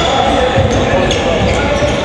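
A handball bounces on a hard floor.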